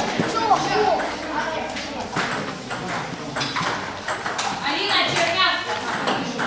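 Ping-pong balls click on tables and paddles in a large echoing hall.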